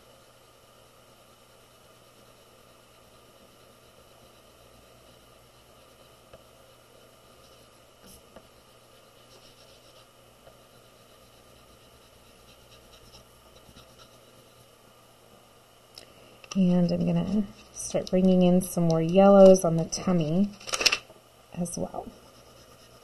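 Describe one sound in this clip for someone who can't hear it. Soft pastel scratches and rubs across paper.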